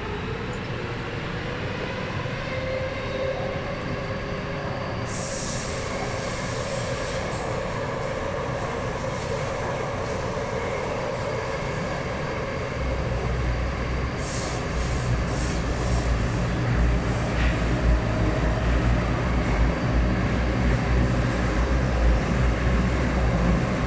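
A subway train hums and rumbles steadily as it runs, growing louder partway through.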